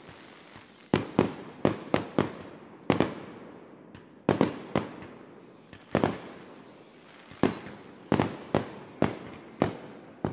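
Fireworks whistle high overhead.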